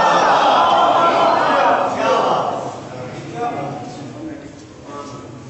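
A young man sings loudly into a microphone, heard through a loudspeaker.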